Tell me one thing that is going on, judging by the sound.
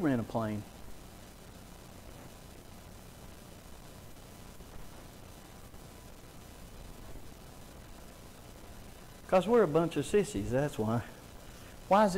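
A man speaks calmly to an audience through a microphone, with pauses.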